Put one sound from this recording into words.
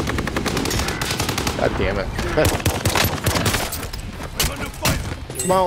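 Rapid gunshots crack in quick bursts.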